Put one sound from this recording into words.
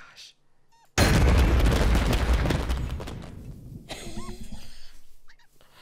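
A young woman laughs loudly and excitedly.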